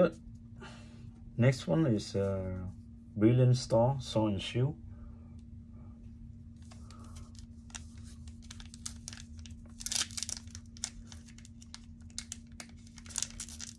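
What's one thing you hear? Foil wrappers crinkle as they are handled.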